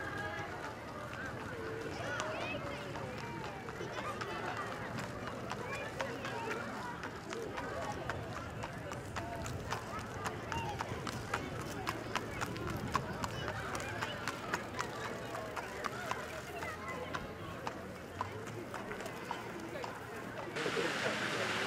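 A horse's hooves clop on pavement.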